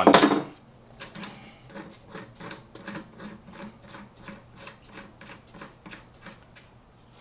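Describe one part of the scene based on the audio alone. Hands rub and scrape steadily against a surface in quick, even strokes.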